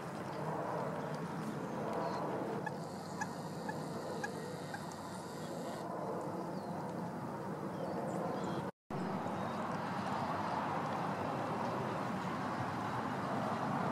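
Wind blows steadily outdoors, rustling through tall reeds.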